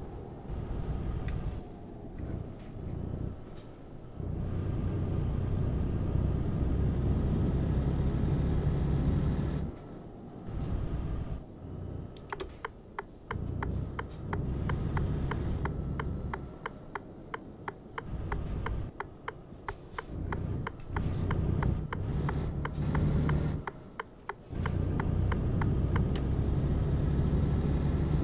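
A truck engine rumbles and hums as it drives along a road.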